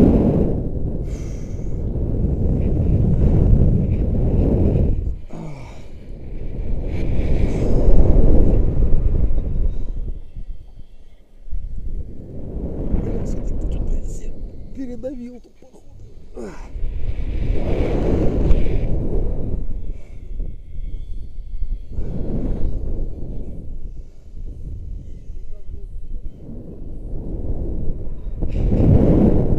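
Wind gusts buffet the microphone high up outdoors, rising and falling in surges.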